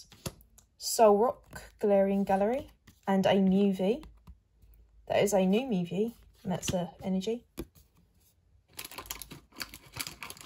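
Trading cards slide and rustle between fingers.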